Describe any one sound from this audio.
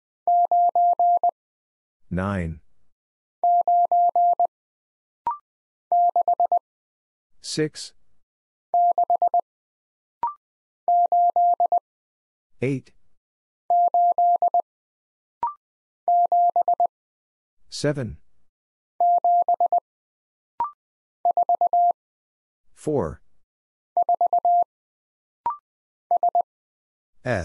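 Morse code beeps sound in quick, steady bursts.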